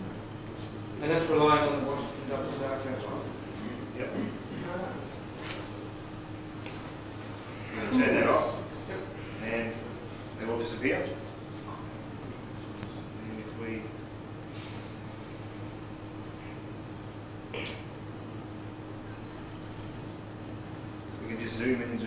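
A man speaks calmly in a large room, with long pauses.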